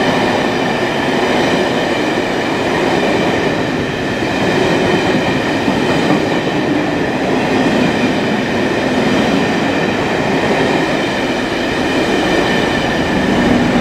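Steel wheels squeal steadily on the track.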